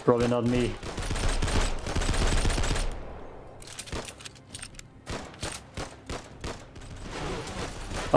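Automatic gunfire rattles rapidly and loudly.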